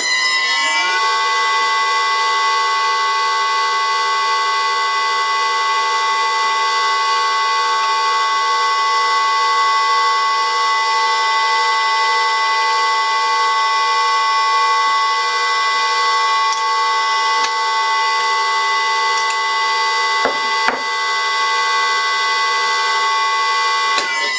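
An electric motor spins up and hums with a steady high whine.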